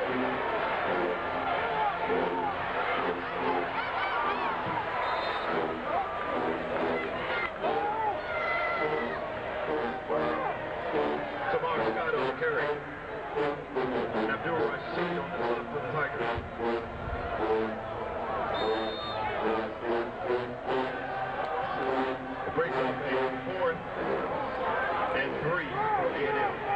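A brass band plays loudly from the stands.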